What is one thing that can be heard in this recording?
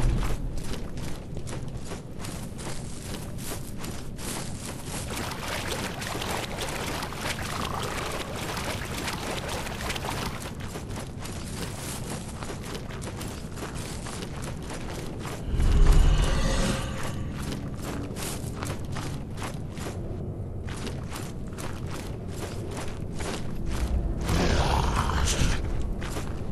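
Footsteps thud quickly on soft ground.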